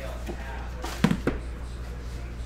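A cardboard box knocks and taps as it is handled.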